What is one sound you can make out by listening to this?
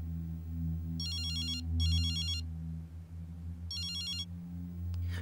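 A mobile phone rings with a repeating electronic tone.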